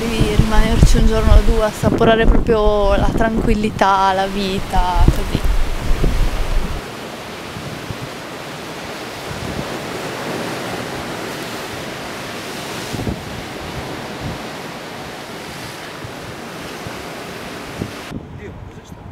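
Wind blows steadily outdoors high above the sea.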